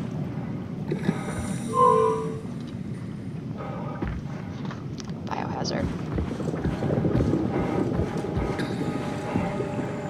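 Water churns and rumbles with a low, muffled roar.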